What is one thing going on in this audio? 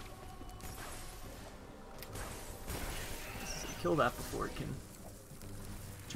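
Blasts and explosions from a video game ring out.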